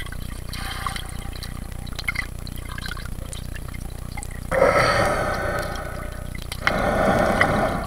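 Water bubbles and swirls close by underwater.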